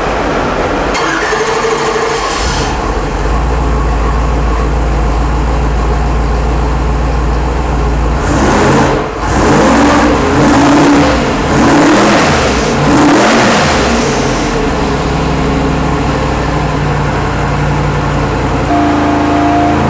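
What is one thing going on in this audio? A powerful racing engine roars loudly, revving up and down repeatedly.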